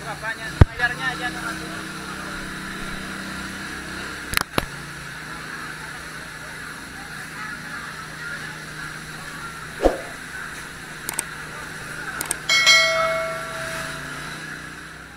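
Water sprays hard from fire hoses with a steady roaring hiss.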